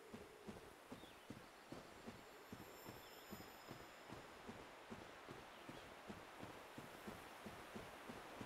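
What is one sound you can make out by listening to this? Footsteps thud steadily on stone.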